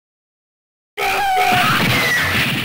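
An arcade game explosion booms.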